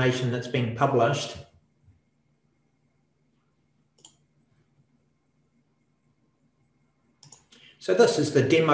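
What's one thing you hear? A man talks calmly and close to a microphone, with pauses.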